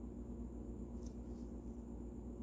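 Stiff trading cards slide and tap against each other in a hand.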